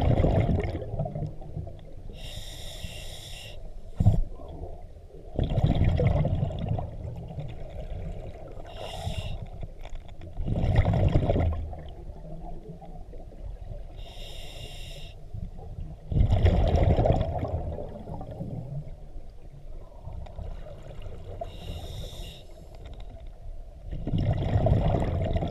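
Exhaled air bubbles from a scuba regulator burble underwater in bursts.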